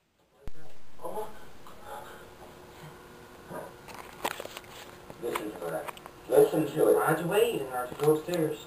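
A young man talks with animation, heard through a television speaker.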